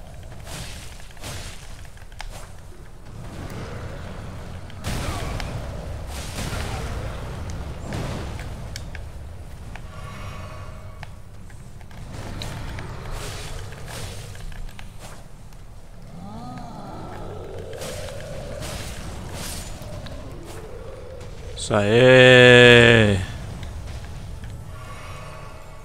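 Heavy thuds and impacts boom during a fight.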